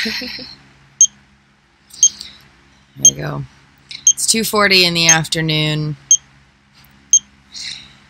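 A pulse monitor beeps steadily about once a second.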